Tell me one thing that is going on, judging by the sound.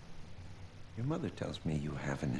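A man speaks calmly and gently, close by.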